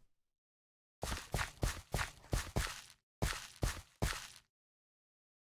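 Footsteps thud on soft ground.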